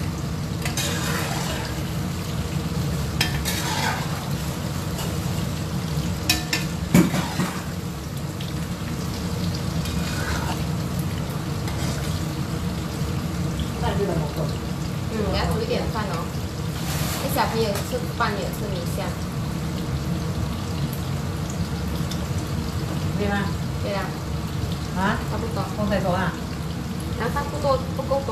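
Tofu sizzles in hot oil in a wok.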